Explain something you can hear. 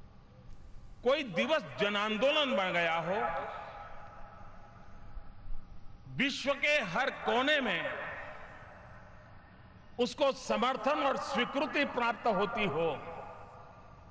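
An elderly man speaks forcefully through a microphone and loudspeakers, in bursts with pauses.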